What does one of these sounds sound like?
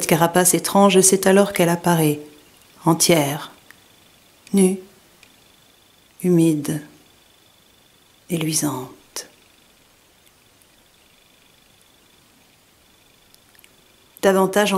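A woman speaks slowly in short phrases, very close to the microphone.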